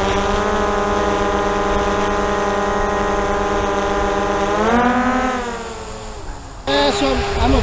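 A quadcopter drone hovers with a steady whining hum that rises in pitch and then cuts out.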